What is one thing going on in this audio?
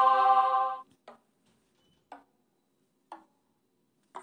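A game's countdown beeps three times.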